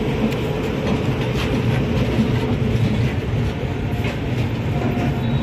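A passenger train rumbles past with wheels clattering on the rails.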